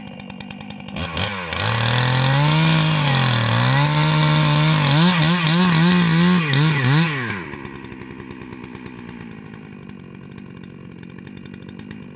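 A chainsaw engine revs loudly up and down, then drops to a low idle.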